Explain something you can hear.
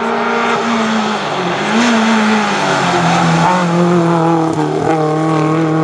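A rally car's engine revs high and drops as it shifts gears.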